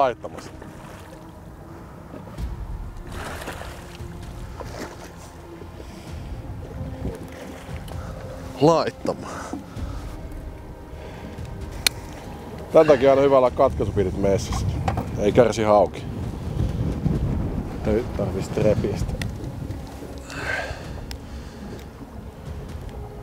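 Wind blows over open water.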